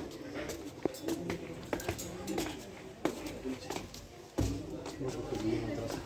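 Footsteps climb a flight of stairs.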